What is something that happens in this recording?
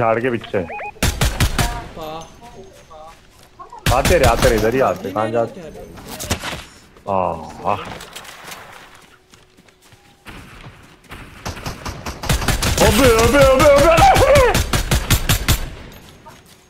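Rapid gunshots ring out in bursts.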